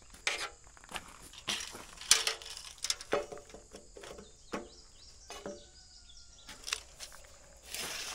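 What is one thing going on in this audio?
A metal tape measure rattles as it slides out and snaps back.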